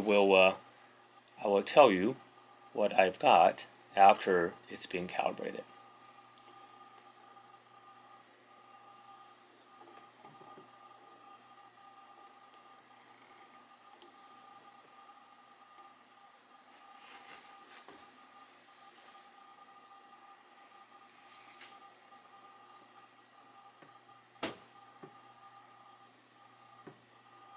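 A small knob clicks softly as fingers turn it.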